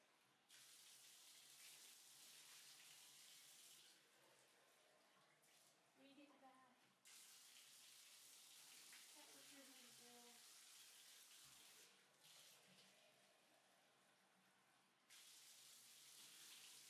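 Water pours and splashes into a bathtub.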